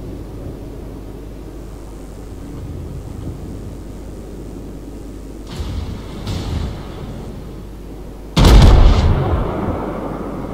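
A ship's engines rumble low and steady.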